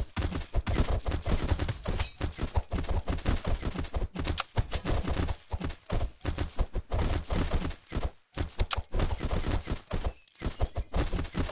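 Cartoon battle sound effects clash and pop rapidly.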